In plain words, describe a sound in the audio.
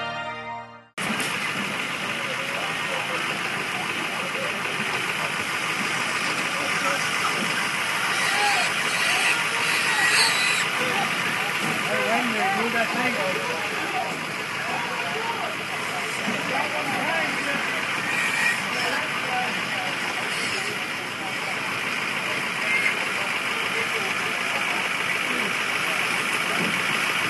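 Pigs squeal and grunt close by.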